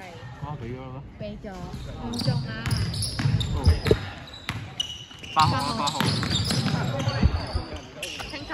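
Basketball players shout and call out to each other in a large echoing hall.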